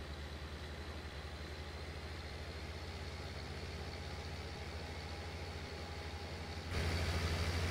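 A tractor engine drones steadily, heard from inside the cab.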